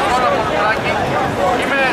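A man speaks loudly through a megaphone.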